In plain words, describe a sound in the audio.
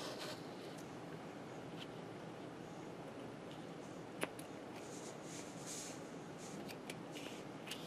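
Scissors snip through a thin foam sheet.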